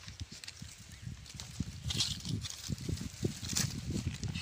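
Dry palm leaves rustle and crackle as a hand grips them.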